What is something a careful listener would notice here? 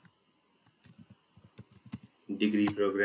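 Keys click quickly on a computer keyboard.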